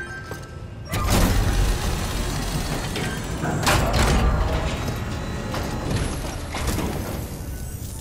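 A conveyor belt rumbles and whirs as it carries a heavy crate.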